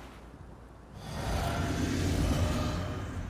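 A magical shimmer swells up and hums.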